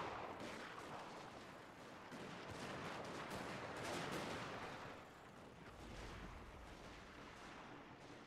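A troop of soldiers tramps up a slope.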